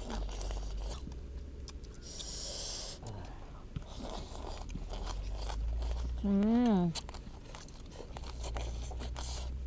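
People slurp noodles noisily.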